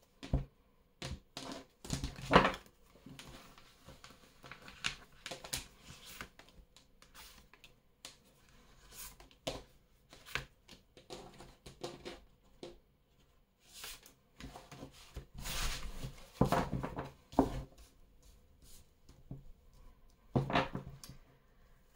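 Cards are laid down on a wooden table with soft taps and slides.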